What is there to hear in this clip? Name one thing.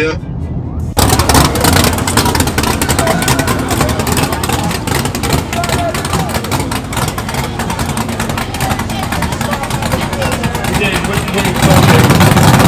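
A car engine idles with a deep rumble.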